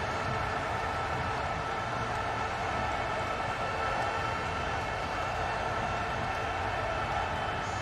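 A large crowd murmurs and cheers in a stadium.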